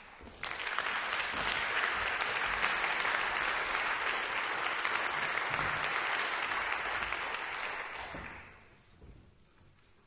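An audience applauds loudly in a large hall, then the clapping fades away.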